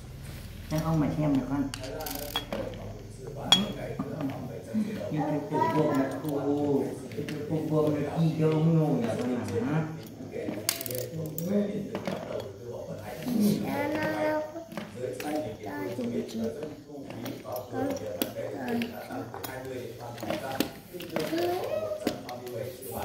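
Small metal parts click and clink against a plastic wheel.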